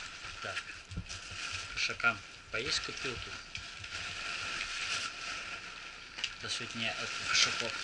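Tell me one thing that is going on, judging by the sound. A man speaks casually, close by.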